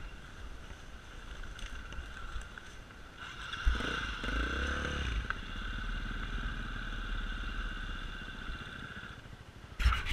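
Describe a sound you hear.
A dirt bike engine drones and revs up and down close by.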